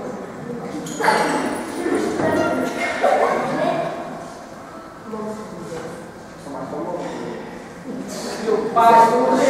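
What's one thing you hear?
A man speaks loudly and expressively, performing to an audience.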